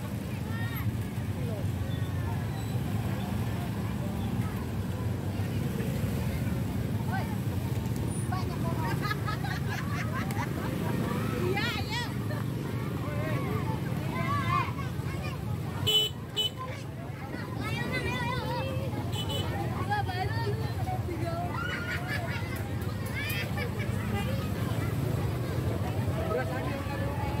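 Motorbike engines hum steadily close by.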